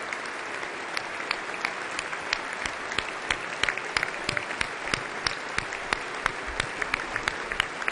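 A man claps his hands close by.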